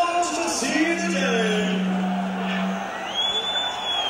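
A rock band plays loudly through loudspeakers.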